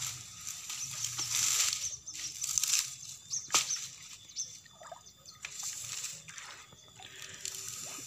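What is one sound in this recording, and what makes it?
Water splashes and trickles in a shallow pond.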